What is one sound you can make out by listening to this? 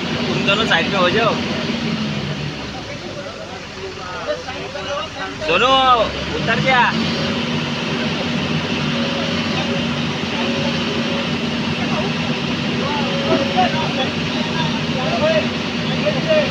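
A diesel crawler excavator's engine runs with a steady drone.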